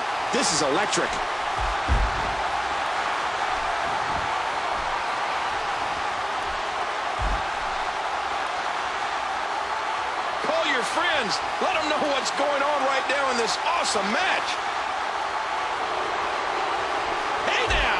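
A crowd roars in a large arena.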